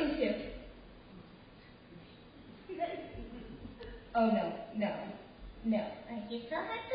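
A young woman talks in a lively, playful voice.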